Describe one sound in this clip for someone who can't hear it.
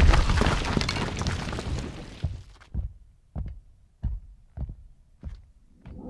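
A body thuds onto a stone floor.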